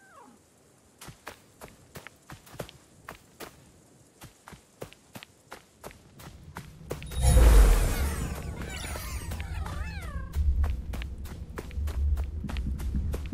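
Footsteps patter quickly on grass and stone.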